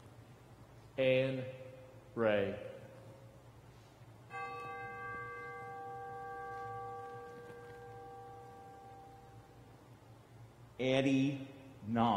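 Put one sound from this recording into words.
A man reads out in short phrases through a microphone, in a reverberant hall.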